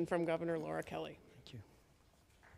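A woman speaks warmly into a microphone.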